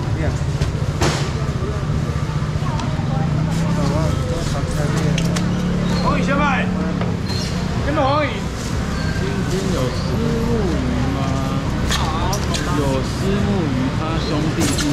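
A crowd of people chatters indoors.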